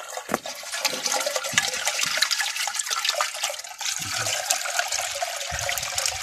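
Water sloshes and splashes as a hand swirls it in a bucket.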